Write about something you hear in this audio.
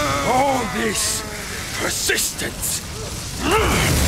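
A man speaks in a low, menacing voice.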